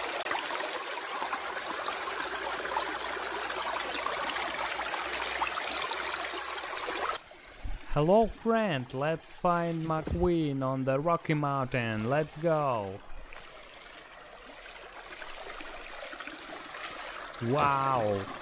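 Water of a stream rushes over rocks.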